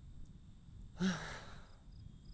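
A young male voice speaks a short word.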